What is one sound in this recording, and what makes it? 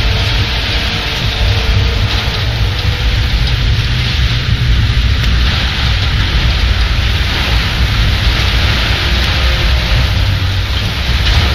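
Heavy rain pours steadily.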